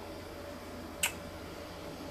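A small metal ring clicks lightly against a hand tool.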